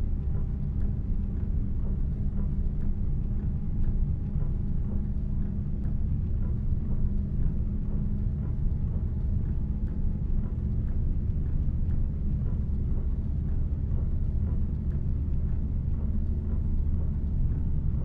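Windshield wipers sweep back and forth.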